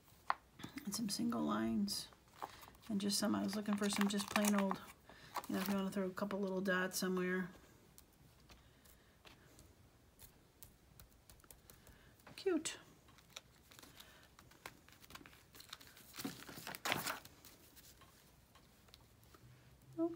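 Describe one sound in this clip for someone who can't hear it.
Thin plastic sheets crinkle and peel as they are handled.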